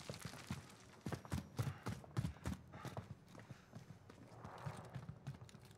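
Quick footsteps thud on a hard floor.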